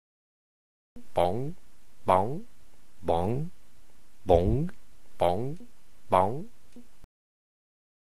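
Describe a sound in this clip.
A small ball bounces with springy, bright boings.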